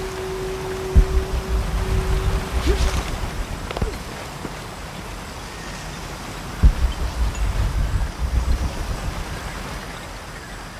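Heavy footsteps thud and scrape over rock.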